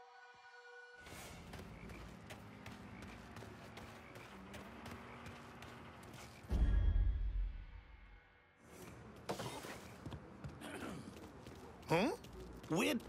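Footsteps scuff softly on a hard floor.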